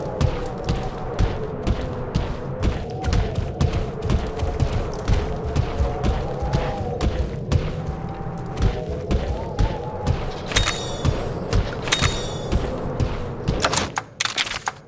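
A running beast's feet pound rapidly on the ground.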